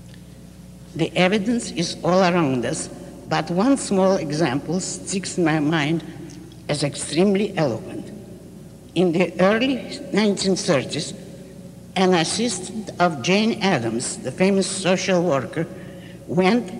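An elderly woman speaks slowly and deliberately into a microphone.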